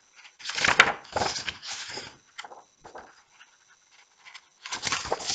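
A woman reads aloud close to a microphone.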